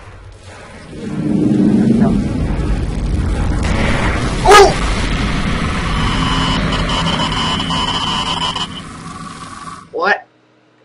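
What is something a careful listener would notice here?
Loud static and a harsh rumbling noise roar.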